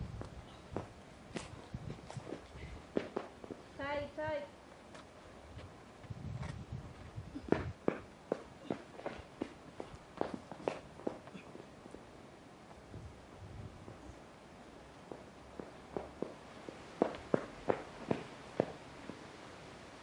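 Hands and climbing shoes scrape and tap against rock close by.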